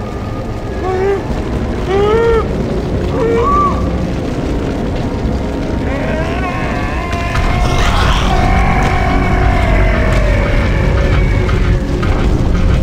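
A man screams and groans in agony.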